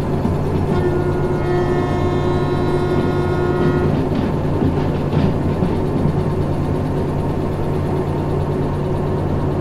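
A diesel locomotive engine rumbles steadily from inside the cab.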